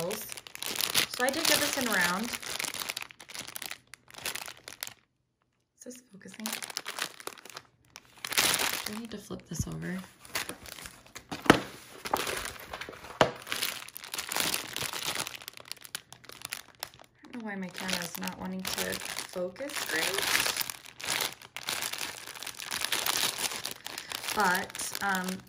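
A plastic bag of beads crinkles and rustles in someone's hands.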